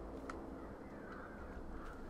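Hands rattle a metal grate.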